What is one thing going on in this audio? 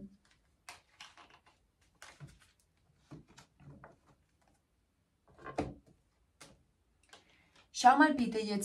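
Cards slide and tap softly on a wooden table.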